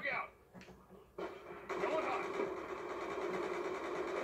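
Rapid gunfire rattles from a video game.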